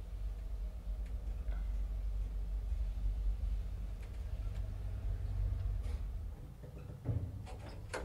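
An elevator hums low and steady.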